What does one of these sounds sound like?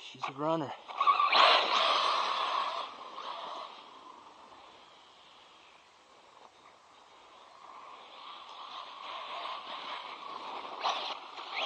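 A small electric motor whines loudly as a toy car speeds away, fades into the distance, and then comes back closer.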